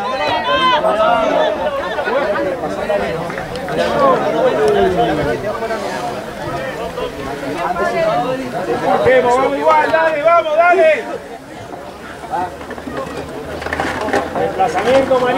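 Men shout and call to each other across an open field outdoors.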